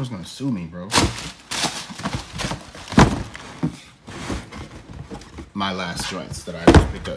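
A cardboard shoebox rustles and thumps as it is handled.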